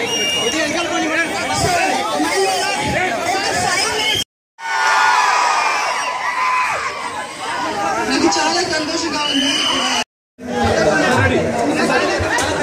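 A crowd chatters and cheers loudly outdoors.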